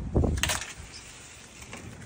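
A spray bottle hisses against a wall.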